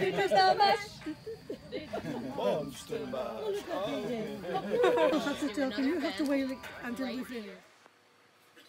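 Men laugh and talk loudly outdoors.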